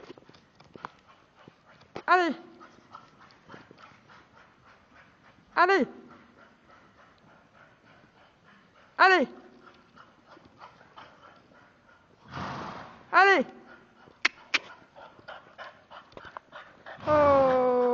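A French bulldog's paws patter as it runs on soft sand.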